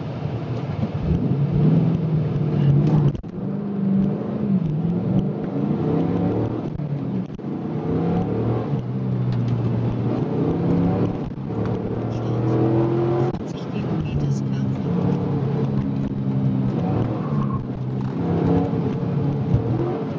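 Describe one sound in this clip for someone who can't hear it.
Tyres roar on tarmac.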